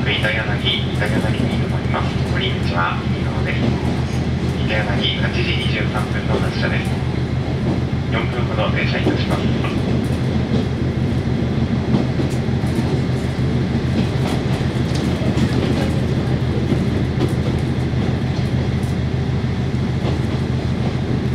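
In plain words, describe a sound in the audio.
Steel wheels rumble and clack on the rails.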